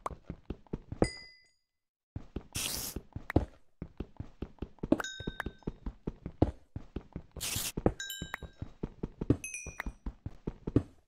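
Small items pop up with a quick high blip.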